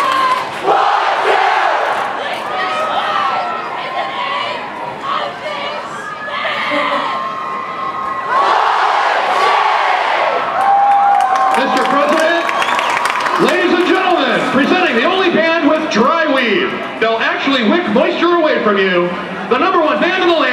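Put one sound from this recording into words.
A marching brass band plays loudly outdoors in a large open stadium.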